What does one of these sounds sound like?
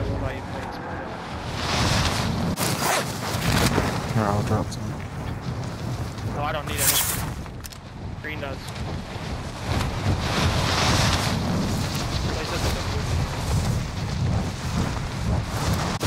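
Wind rushes past during a freefall.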